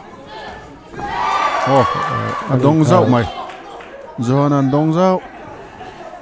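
Spectators shout and cheer nearby.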